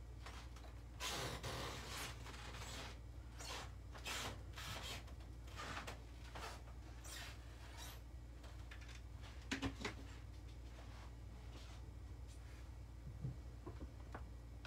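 Wooden pieces tap on a table.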